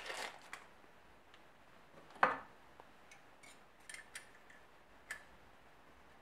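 Metal parts click and clink softly as they are handled.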